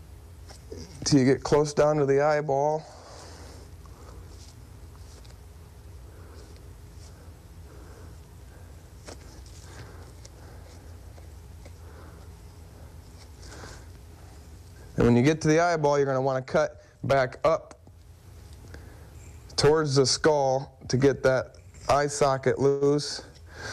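A man speaks calmly nearby, in short bursts.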